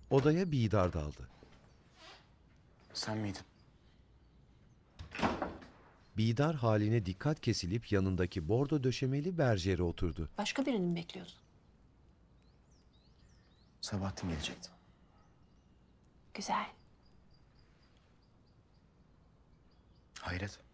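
A young man speaks calmly and quietly, close by.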